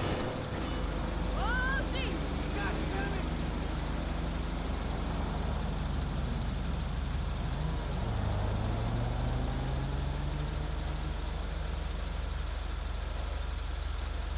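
Cars drive past.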